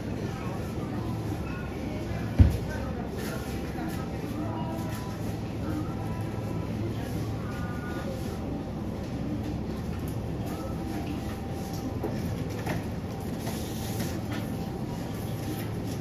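A refrigerator hums steadily nearby.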